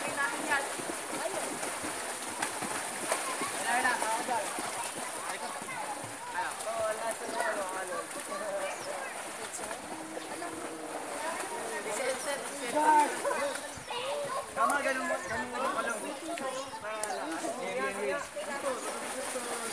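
Several young people chat casually at a distance outdoors.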